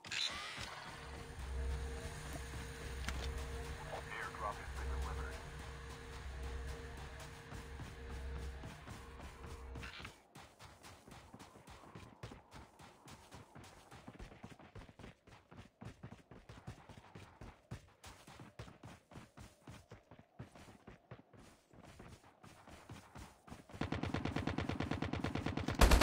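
Footsteps run quickly over grass and rock.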